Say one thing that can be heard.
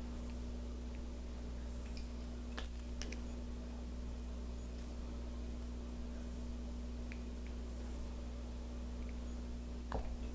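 Small plastic parts click and tap as wires are handled.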